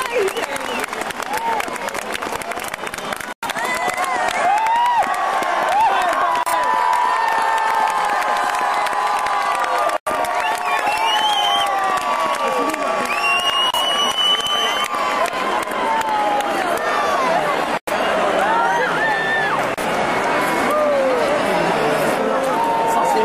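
Fireworks crackle and pop overhead.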